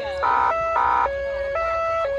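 A police car's electronic horn blasts twice.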